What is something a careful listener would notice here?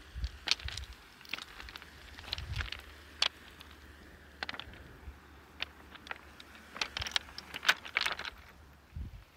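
Footsteps crunch on loose pebbles.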